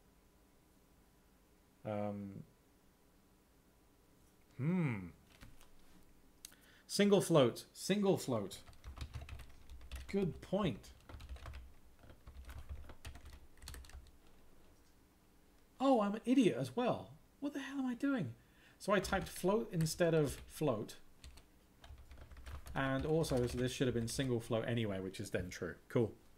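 Keys clatter as a man types on a keyboard.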